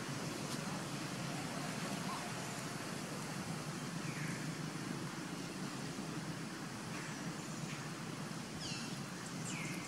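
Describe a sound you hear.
A young monkey rustles dry leaves on the ground.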